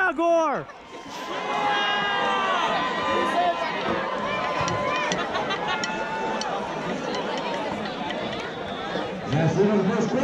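A marching band plays brass and drums loudly outdoors.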